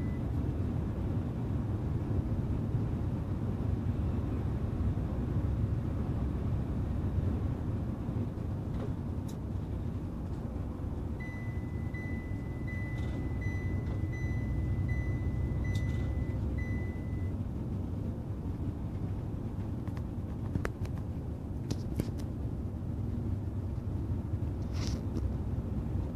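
Tyres roar steadily on the road.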